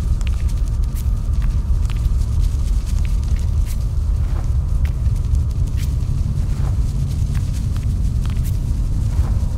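Small stone fragments click and patter.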